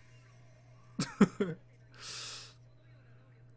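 A young man laughs softly close to a microphone.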